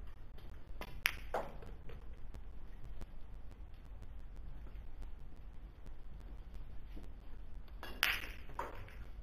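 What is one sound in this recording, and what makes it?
Pool balls clack sharply together.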